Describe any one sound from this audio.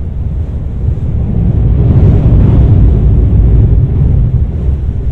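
A train roars louder as it passes a bridge tower.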